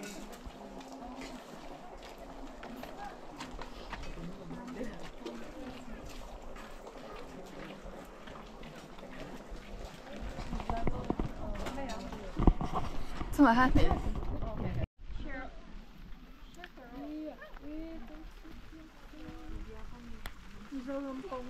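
Several young women chat nearby in a crowd.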